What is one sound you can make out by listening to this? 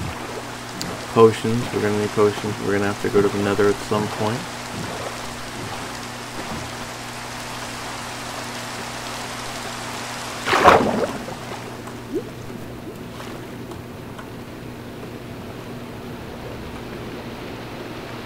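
Video game rain patters steadily on water.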